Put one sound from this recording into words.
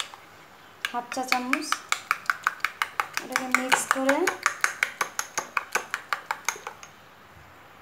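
A spoon clinks and scrapes quickly against a bowl while stirring.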